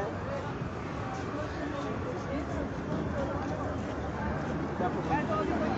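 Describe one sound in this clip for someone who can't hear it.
Several people talk over one another nearby.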